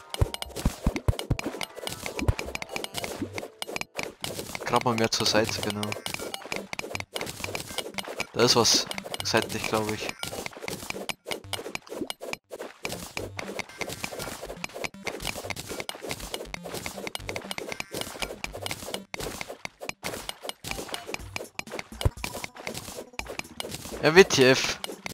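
A pickaxe repeatedly chips at stone in quick, short clicks.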